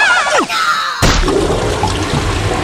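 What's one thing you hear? A heavy object splashes into water.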